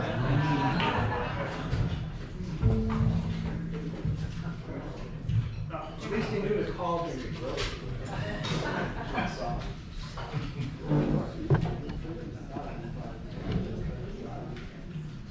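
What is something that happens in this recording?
A drummer plays a lively jazz beat on a drum kit.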